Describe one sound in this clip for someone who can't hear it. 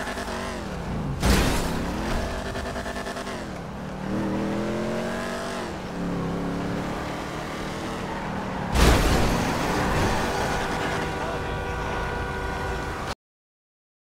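A car engine revs hard, rising and dropping in pitch as it shifts gears.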